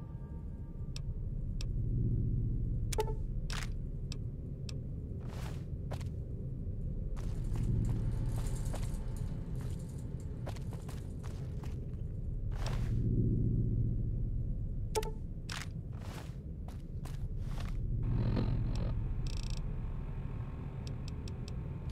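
Short interface clicks and beeps sound as menu items are selected.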